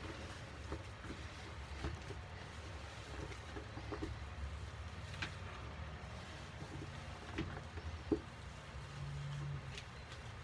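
Gloved hands knead and squish a crumbly damp powder in a plastic bowl.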